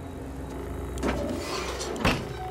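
An electronic panel beeps as a button is pressed.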